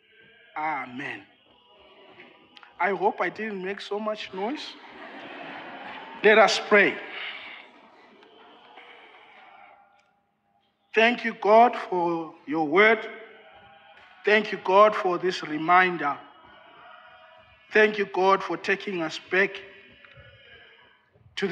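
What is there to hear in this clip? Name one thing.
A man speaks steadily through a microphone in an echoing hall.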